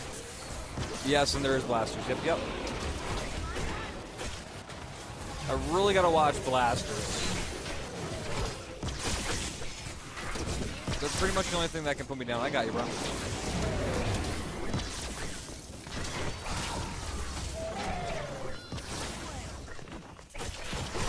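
Video game gunfire and blasts crackle.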